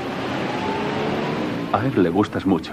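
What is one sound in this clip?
A car drives past through water on a wet road.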